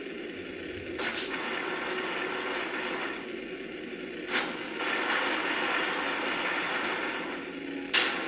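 Game sound effects burst out with short whooshes.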